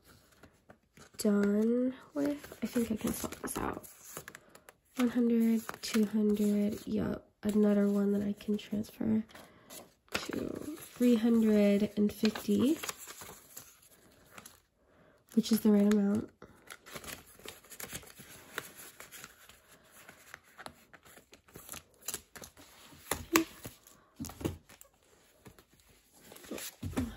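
Paper bills rustle and crinkle as they are handled.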